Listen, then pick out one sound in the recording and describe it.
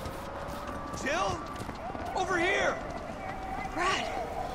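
A man shouts from a distance.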